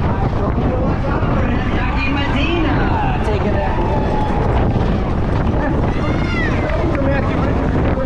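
A crowd of spectators cheers and shouts along the road.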